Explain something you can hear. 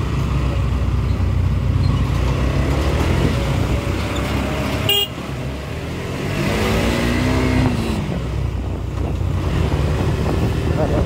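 An engine rumbles steadily up close.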